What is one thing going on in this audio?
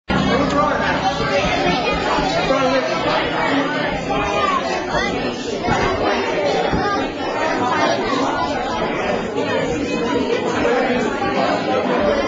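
A band plays live music through loudspeakers in a large room.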